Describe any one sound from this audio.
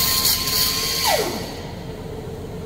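An angle grinder winds down and stops.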